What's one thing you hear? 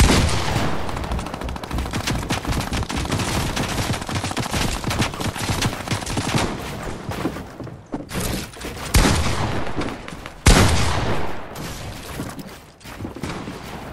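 Building pieces clatter into place in a video game.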